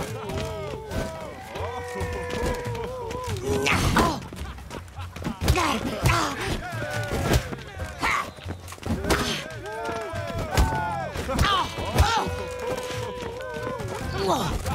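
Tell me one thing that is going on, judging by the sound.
Men grunt as they fight.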